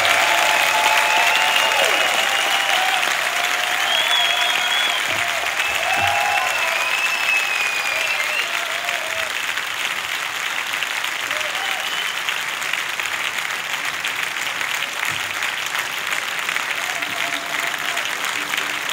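An ensemble plays music in a large hall.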